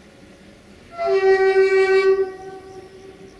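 A locomotive horn sounds one loud, long blast.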